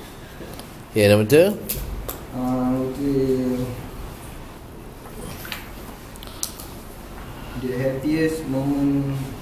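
A young man speaks hesitantly, in short bursts with pauses.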